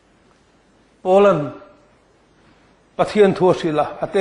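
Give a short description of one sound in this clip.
A middle-aged man speaks with emphasis into a microphone, in a slow preaching manner.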